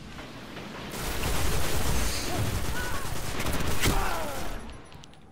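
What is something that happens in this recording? A huge explosion roars.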